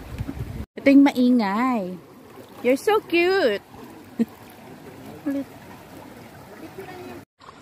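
Shallow water ripples and gurgles steadily.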